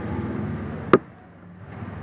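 A microphone bumps with a loud thud.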